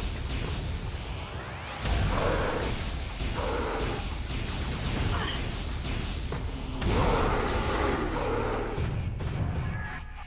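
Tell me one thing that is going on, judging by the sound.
Energy beams crackle and zap in rapid bursts.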